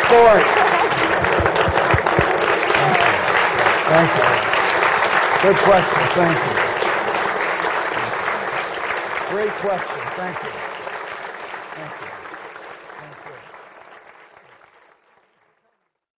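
A large crowd applauds loudly, then the applause slowly fades away.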